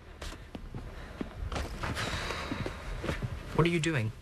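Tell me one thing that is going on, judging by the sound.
Clothes rustle as they are handled.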